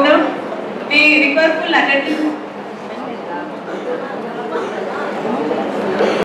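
A woman speaks into a microphone through loudspeakers in an echoing hall.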